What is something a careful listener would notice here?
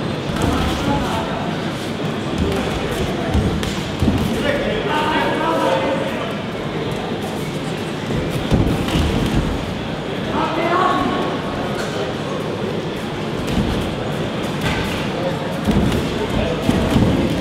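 A crowd of spectators murmurs and shouts in a large echoing hall.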